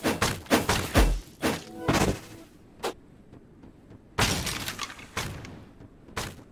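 Magic bolts fire with short zaps.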